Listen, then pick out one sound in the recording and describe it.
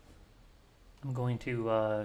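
A man speaks up close into a microphone.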